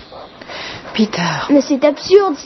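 A woman speaks softly and gently nearby.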